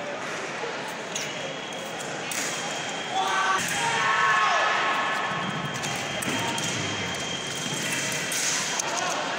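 Fencers' feet stamp and shuffle on the floor.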